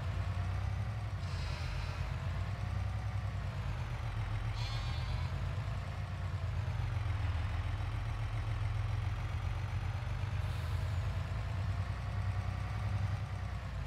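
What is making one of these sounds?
A truck engine rumbles steadily, its pitch rising and falling as it drives.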